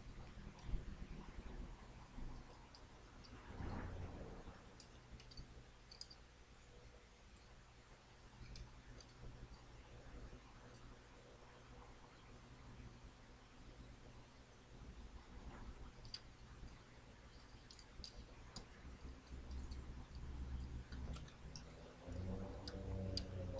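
A man speaks calmly and quietly, close to a microphone.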